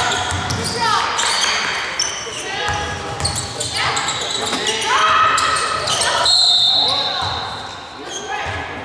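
Sneakers squeak sharply on a hard court, echoing in a large hall.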